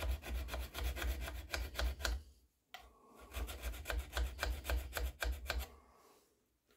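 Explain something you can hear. A hand tool scrapes on metal in quick strokes.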